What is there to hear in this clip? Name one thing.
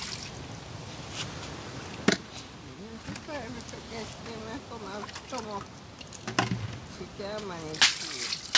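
Water splashes as it is poured from a cup into a bucket.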